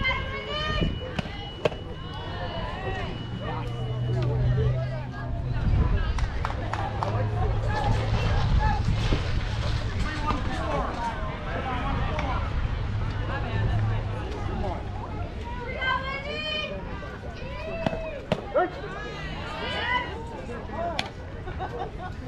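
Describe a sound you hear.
Young players call out and cheer outdoors.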